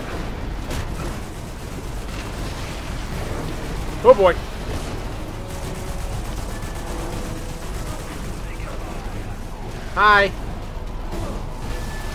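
A heavy tank engine rumbles low and steady.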